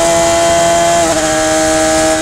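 A racing car engine shifts gear with a brief dip in pitch.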